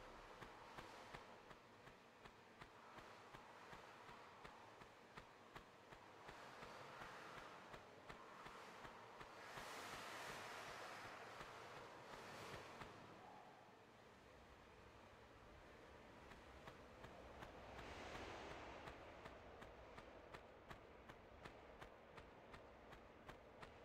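Footsteps patter quickly on a hard floor as a game character runs.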